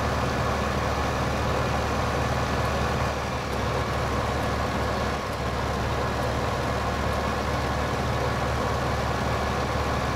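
A tractor engine hums steadily as it pulls a trailer along a road.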